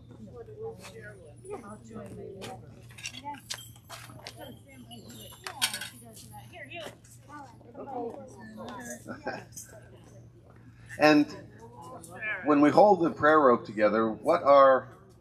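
A middle-aged man speaks calmly and clearly, close by, outdoors.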